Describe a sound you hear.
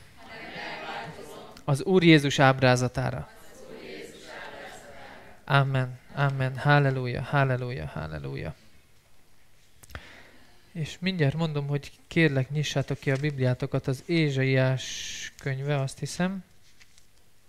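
A man speaks through a microphone in an echoing room.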